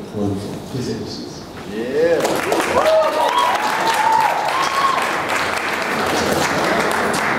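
A crowd of people chatters and murmurs in a large echoing room.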